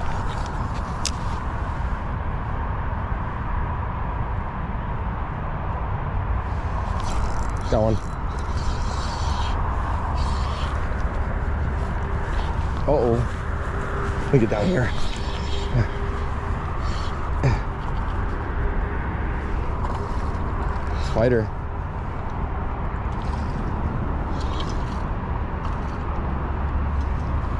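A fishing reel whirs and clicks as its handle is cranked.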